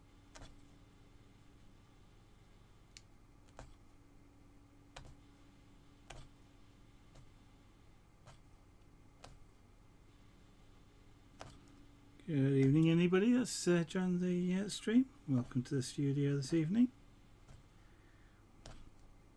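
A punch needle clicks softly as it pokes through cloth.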